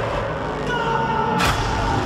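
A young man screams in terror.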